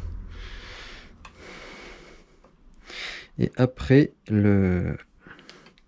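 A hex key clicks against a metal bracket as a bolt is turned.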